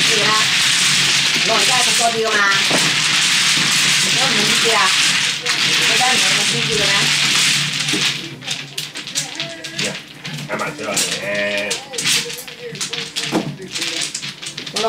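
Mahjong tiles clack and rattle on a table.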